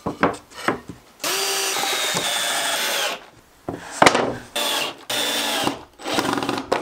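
A cordless drill whirs in short bursts.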